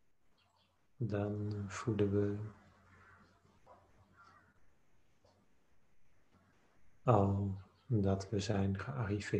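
A man chants slowly in a low, steady voice, heard through a microphone on an online call.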